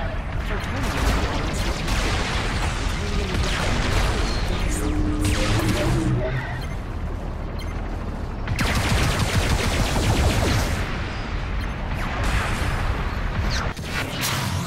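Rapid laser gunfire crackles in bursts.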